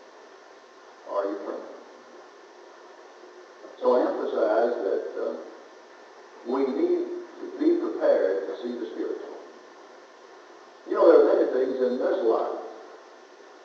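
An elderly man preaches slowly and forcefully through a microphone, with pauses between phrases.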